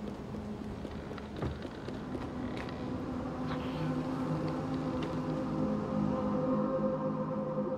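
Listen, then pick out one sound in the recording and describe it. Small footsteps patter on wooden boards.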